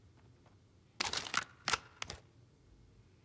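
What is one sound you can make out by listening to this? A gun rattles as it is picked up.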